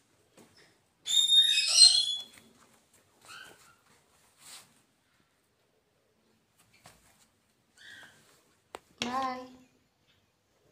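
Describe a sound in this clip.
A hen squawks and clucks loudly nearby.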